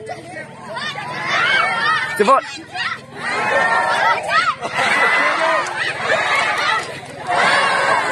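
A crowd of people cheers and shouts outdoors.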